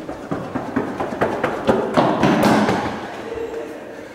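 Footsteps run along an echoing hallway.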